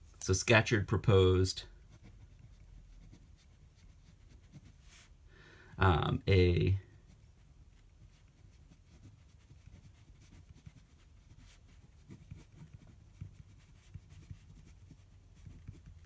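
A felt pen scratches softly on paper.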